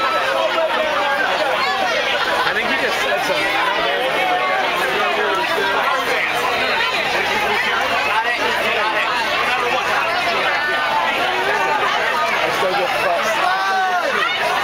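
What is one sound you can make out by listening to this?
A large crowd shouts and cheers outdoors.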